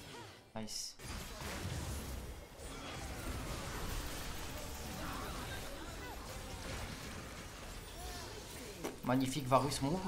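Game sound effects of a battle clash and blast.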